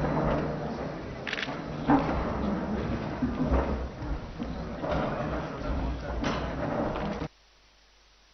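A crowd of men chatter and murmur nearby.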